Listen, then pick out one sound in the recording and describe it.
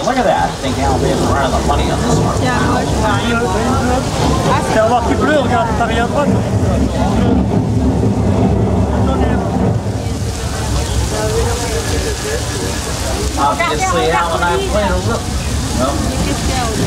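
Adult men and women chatter nearby.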